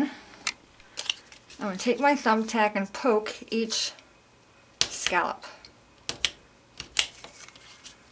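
Stiff paper rustles and taps softly under fingers.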